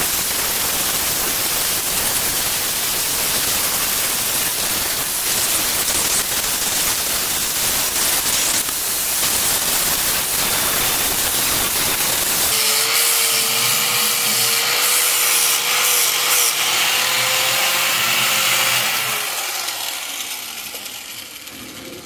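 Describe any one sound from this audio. A wire brush on a power grinder scrapes loudly against metal, then winds down.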